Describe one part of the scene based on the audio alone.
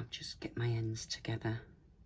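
A thin cord rustles and slides across paper.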